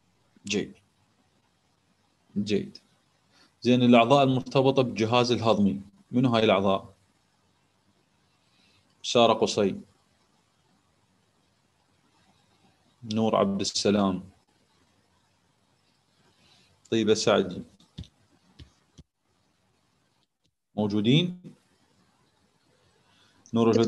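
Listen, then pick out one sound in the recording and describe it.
A man speaks calmly in short phrases with long pauses, heard through a microphone.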